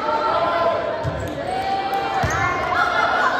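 A volleyball is struck with a dull thump.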